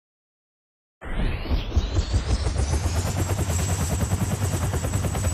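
A helicopter rotor thumps steadily and quickly.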